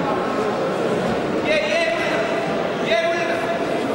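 Bodies thud onto a mat as a wrestler is thrown.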